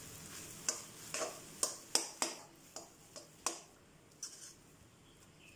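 A metal spatula scrapes and clatters against a pan.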